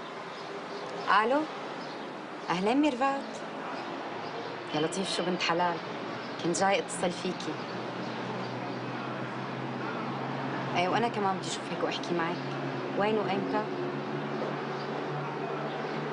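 A young woman talks on a phone, calmly and close by.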